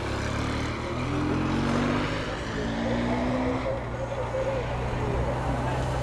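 A motorcycle engine hums nearby.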